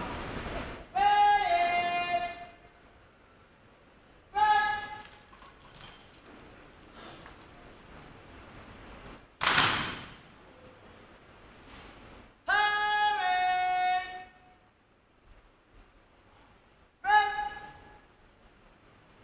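A bugle corps plays short, loud brass calls in a large echoing hall.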